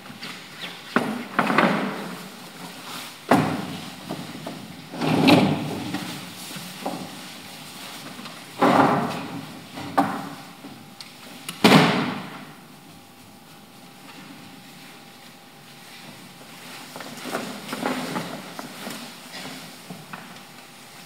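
A young woman speaks expressively through a microphone in a large hall.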